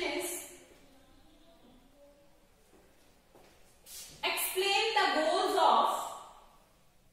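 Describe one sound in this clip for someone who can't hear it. A woman explains calmly, close by.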